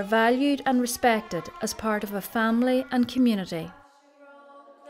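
A woman sings clearly nearby.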